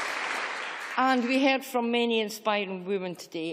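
A woman speaks into a microphone in a large hall.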